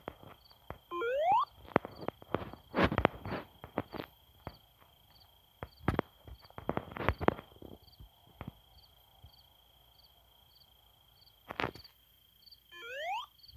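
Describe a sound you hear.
A rising electronic whirr sounds as a game character curls into a spinning ball.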